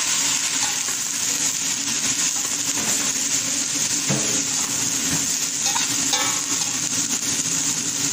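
A metal spatula scrapes and stirs against a pan.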